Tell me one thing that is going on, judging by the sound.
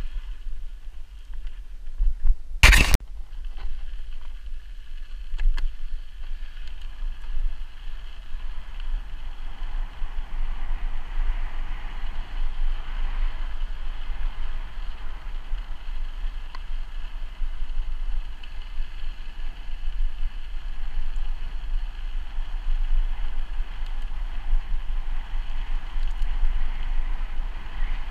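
Tyres roll steadily over a rough path.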